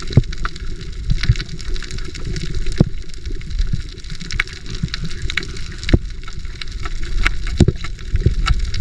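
Underwater, a coral reef crackles and pops with sharp clicks.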